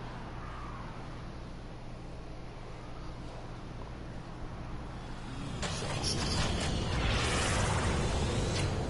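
A man talks quietly into a microphone.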